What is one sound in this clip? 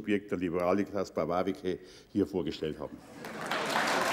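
An elderly man speaks into a microphone over a loudspeaker in a large hall.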